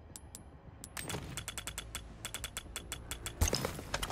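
Menu clicks tick softly in a quick series.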